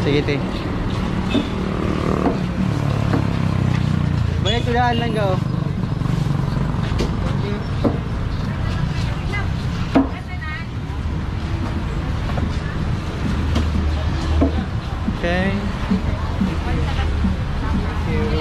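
A busy market crowd murmurs outdoors.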